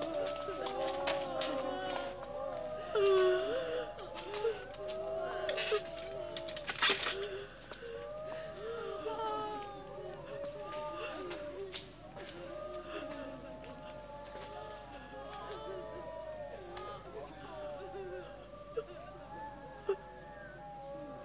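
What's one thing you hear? Women and men wail and moan in grief nearby.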